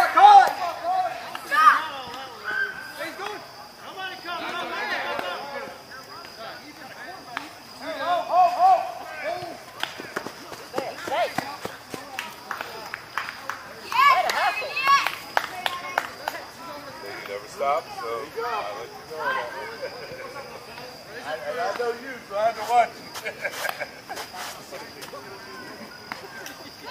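Men call out and shout to each other across an open field.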